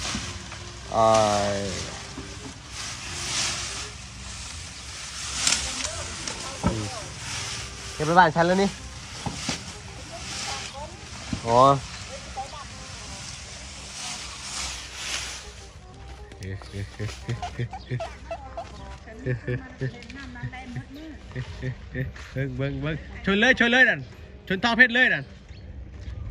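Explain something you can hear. A young elephant squeals in short high cries.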